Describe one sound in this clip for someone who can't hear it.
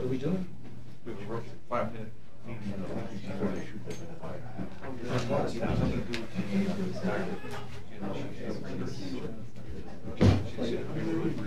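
Men talk quietly in a room with some echo.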